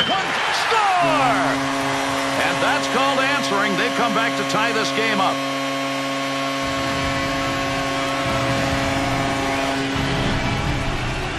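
A goal horn blares.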